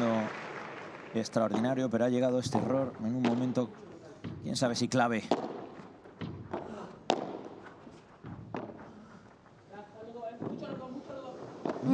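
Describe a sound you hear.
Padel rackets strike a ball back and forth with sharp pops.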